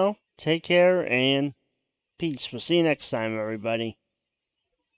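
A young man speaks close to a headset microphone.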